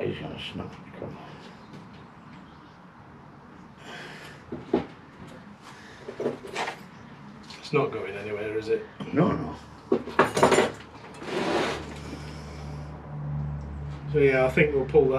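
A middle-aged man talks calmly and casually nearby.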